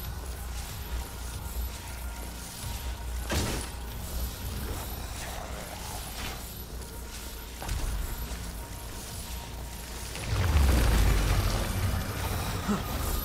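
Footsteps run quickly on wet pavement.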